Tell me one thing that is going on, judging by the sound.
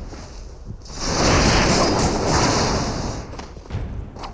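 A gust of icy wind roars loudly and fades.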